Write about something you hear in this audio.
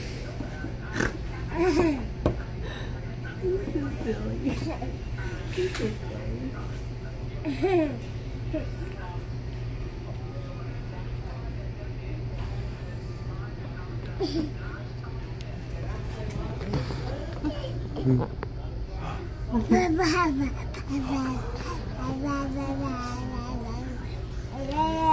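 A young woman talks gently to a baby up close.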